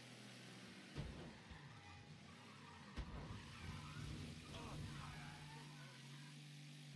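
A race car's tyres screech as it swerves.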